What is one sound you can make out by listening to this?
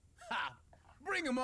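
A man shouts boldly.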